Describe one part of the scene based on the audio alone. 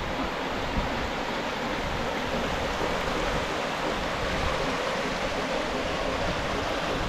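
A stream rushes and splashes steadily over rocks into a pool.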